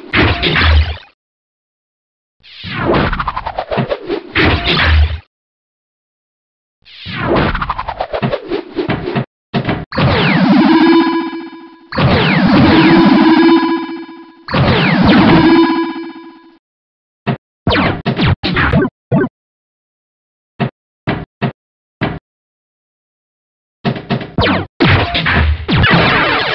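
Electronic pinball sound effects whoosh, ding and chime in bursts.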